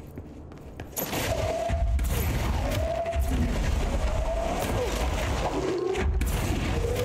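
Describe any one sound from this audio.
Heavy objects crash and shatter, scattering rubble.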